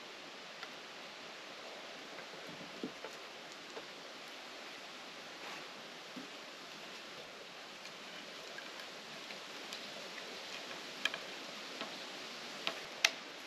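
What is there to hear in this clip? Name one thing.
Wooden poles knock together now and then.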